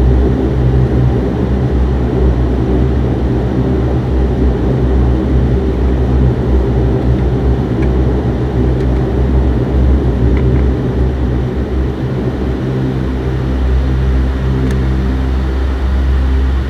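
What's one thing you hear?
Jet engines hum and roar steadily outdoors.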